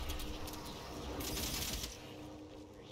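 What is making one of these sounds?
A plasma gun fires crackling bursts.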